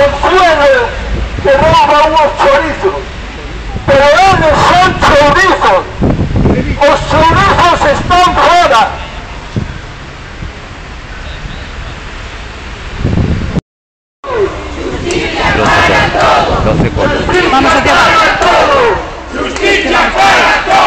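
A crowd of elderly men and women chants loudly together outdoors.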